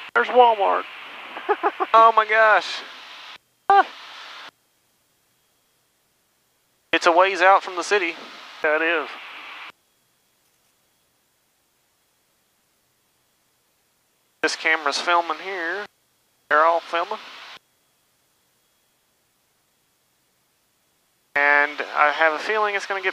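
A man speaks in short bursts over a headset intercom.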